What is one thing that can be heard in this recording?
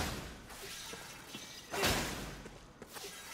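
A crackling energy blast bursts and fizzes.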